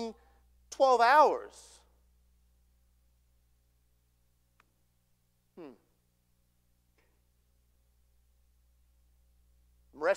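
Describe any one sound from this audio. A middle-aged man speaks with emphasis through a microphone, pausing often.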